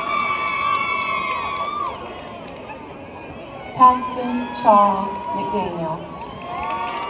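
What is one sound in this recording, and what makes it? People whoop and cheer loudly outdoors.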